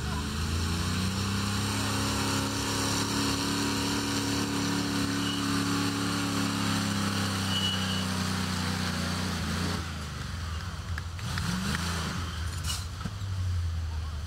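Tyres crunch over dirt.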